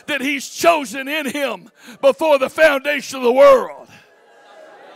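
An older man speaks with animation into a microphone, heard through loudspeakers in a large room.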